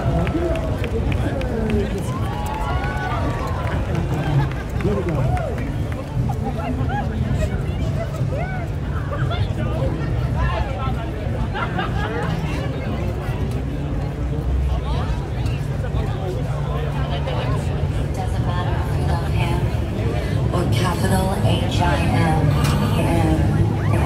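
A large crowd chatters and murmurs outdoors all around.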